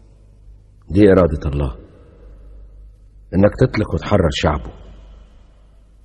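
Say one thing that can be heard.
A man answers in a firm, low voice.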